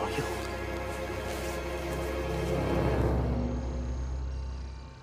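A man speaks slowly in a low, menacing voice, close by.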